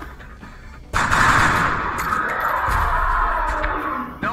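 An assault rifle fires a burst of shots.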